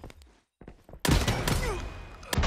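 A pump-action shotgun fires a loud blast.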